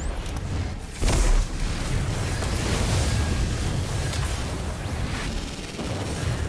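Gunfire and explosions crackle and boom in a video game.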